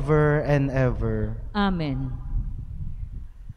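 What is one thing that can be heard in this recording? A young man chants into a microphone.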